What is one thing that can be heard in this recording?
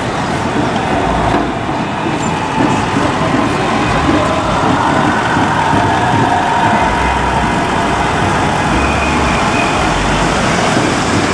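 Cars idle and roll slowly along a busy city street.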